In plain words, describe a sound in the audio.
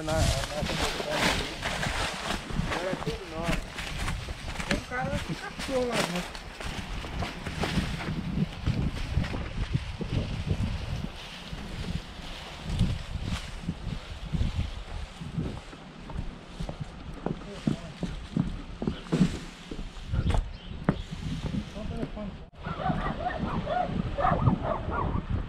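Footsteps crunch through dry brush and grass.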